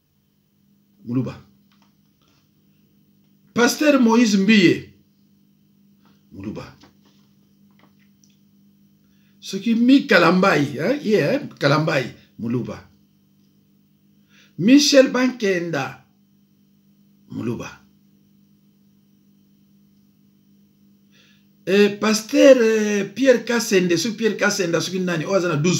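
A middle-aged man speaks calmly and close to the microphone in short bursts with pauses.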